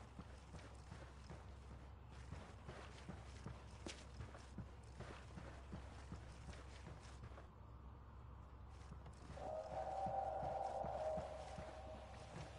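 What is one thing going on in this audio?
Footsteps thud quickly on a hard surface.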